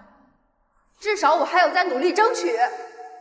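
A young woman speaks earnestly, close by.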